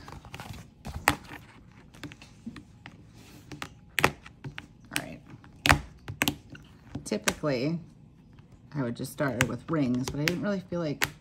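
Plastic binder discs snap and click as pages are pressed onto them.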